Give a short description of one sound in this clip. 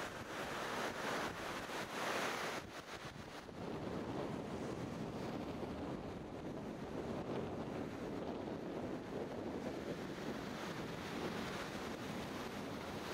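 Wind blows steadily across the open ground and buffets the microphone.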